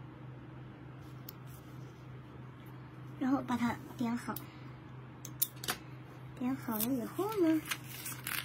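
Paper rustles and slides as it is moved by hand.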